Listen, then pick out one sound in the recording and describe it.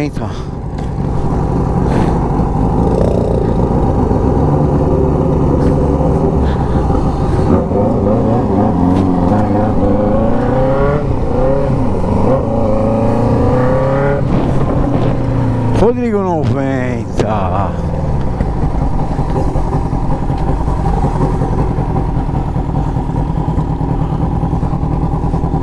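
Wind rushes past in a low, steady roar.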